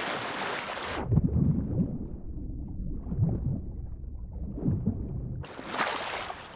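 A deep, muffled rumble sounds underwater.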